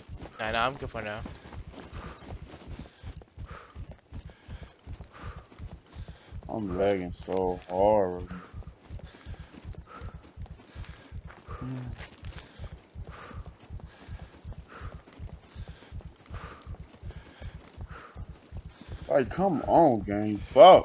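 Footsteps tread steadily on dirt and stone.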